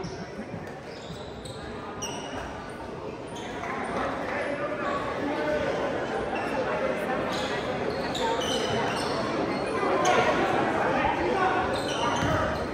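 A crowd of spectators murmurs and cheers, growing louder.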